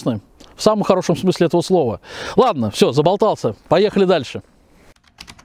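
A man speaks calmly into a clip-on microphone outdoors.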